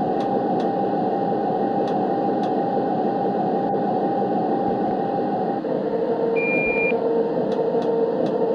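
A train engine hums steadily.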